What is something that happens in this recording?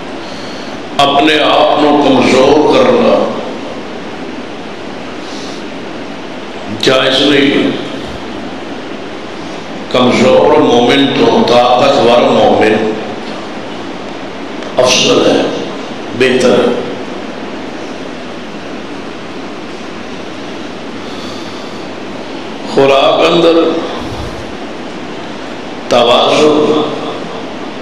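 A man speaks into a microphone with feeling, in short phrases with long pauses, heard through loudspeakers in an echoing hall.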